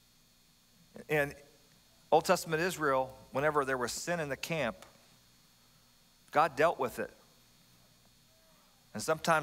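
A middle-aged man speaks calmly with pauses through a microphone.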